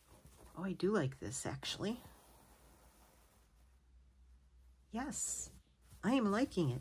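Fabric rustles softly as it is handled.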